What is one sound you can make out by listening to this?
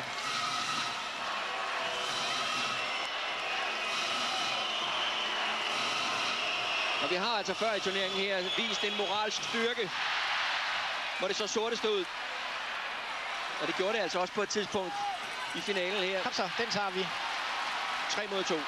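A large crowd cheers and chants in an echoing arena.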